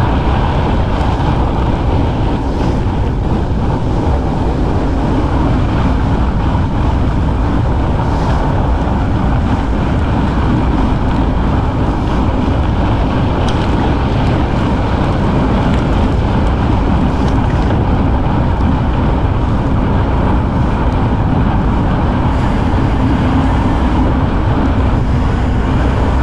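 Wind roars steadily against the microphone.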